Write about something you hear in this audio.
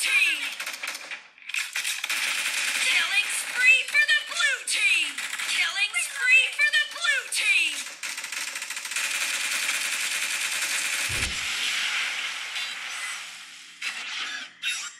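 Game sounds play loudly from a phone's speaker.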